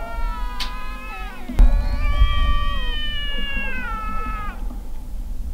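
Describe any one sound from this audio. Cats yowl and growl at each other in a long, wavering standoff.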